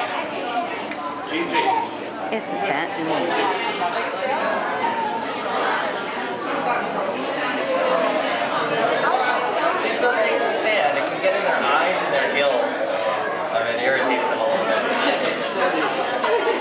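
A crowd of children and adults chatters and calls out in an echoing indoor space.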